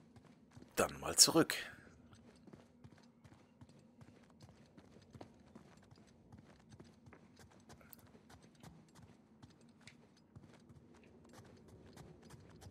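Footsteps tap on a hard stone floor and stairs.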